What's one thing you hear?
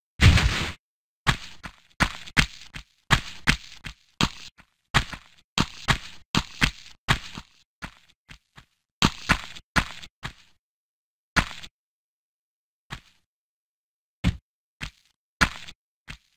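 Footsteps patter quickly on a hard floor, echoing slightly.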